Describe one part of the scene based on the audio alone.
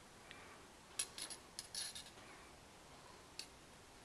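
A metal ruler clicks lightly against a metal engine part.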